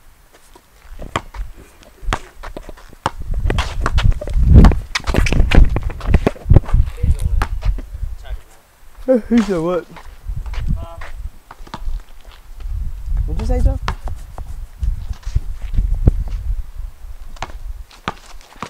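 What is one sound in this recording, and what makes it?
A basketball bounces on concrete outdoors.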